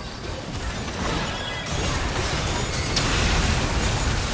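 Magic spells whoosh and blast in a fast video game battle.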